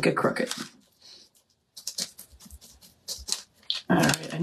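A pencil scratches on paper.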